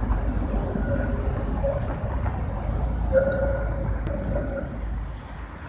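Tram wheels squeal on a curved track.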